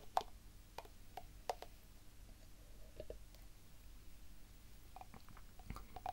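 A woman sips and swallows a drink close by.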